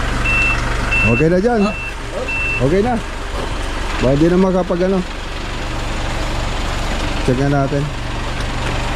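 A man speaks calmly nearby in short phrases.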